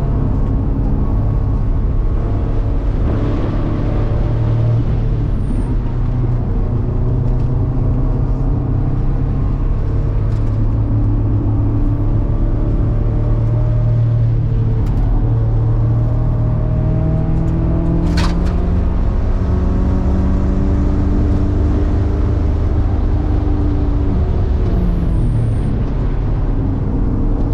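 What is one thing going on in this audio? A car engine roars loudly from inside the cabin, rising and falling in pitch as it shifts gears.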